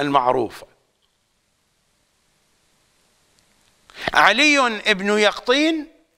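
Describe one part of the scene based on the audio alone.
An elderly man speaks calmly and with feeling into a close microphone, pausing between phrases.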